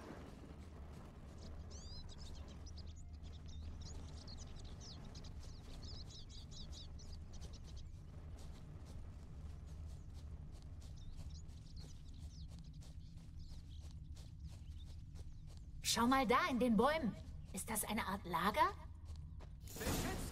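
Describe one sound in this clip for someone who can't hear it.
Footsteps rustle quickly through grass.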